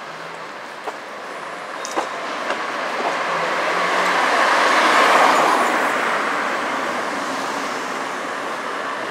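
A car drives past close by, rising and fading.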